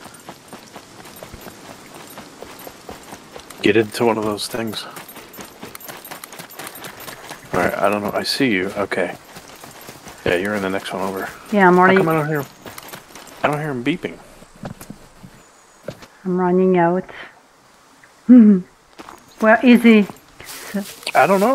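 Footsteps run over gravel and grass.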